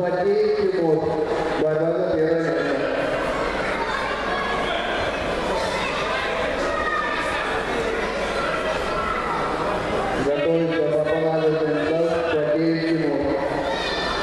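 A crowd of spectators murmurs in a large echoing hall.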